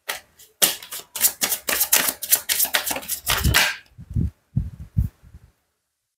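Playing cards riffle and flutter rapidly as a deck is shuffled by hand.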